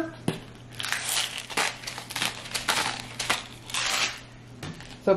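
Seasoning rustles and patters as it is sprinkled from a hand into a pot.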